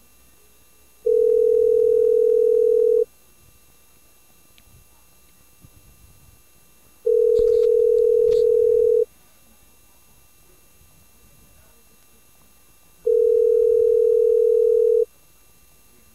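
A phone call's ringing tone sounds in long, steady beeps with pauses between them.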